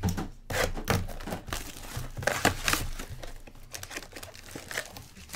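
Plastic wrapping crinkles and rustles as hands handle a box.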